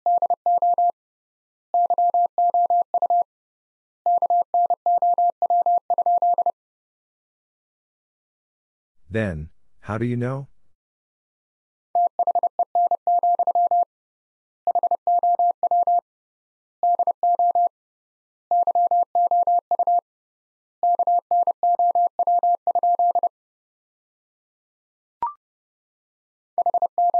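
A telegraph key sends Morse code as a series of short and long steady beeps.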